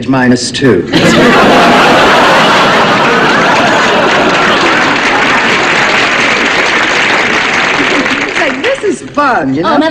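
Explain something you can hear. Several women laugh heartily.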